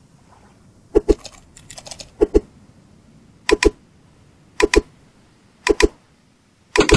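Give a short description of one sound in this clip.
A knife strikes a coconut with sharp, repeated knocks.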